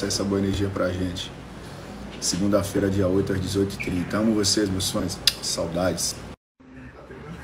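A young man talks calmly, close to a phone microphone.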